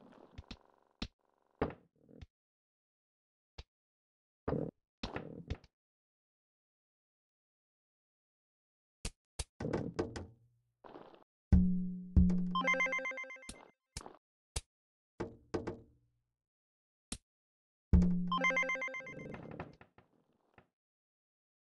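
Game sound effects click and pop as pieces drop.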